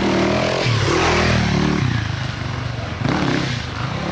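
A second dirt bike engine buzzes and revs in the distance.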